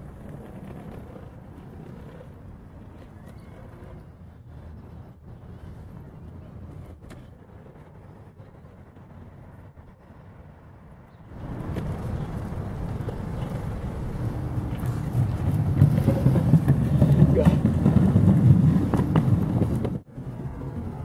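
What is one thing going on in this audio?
Skateboard wheels roll and rumble over paving stones.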